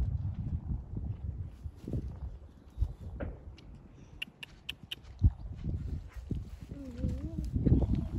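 A horse's hooves thud on grass as the horse canters.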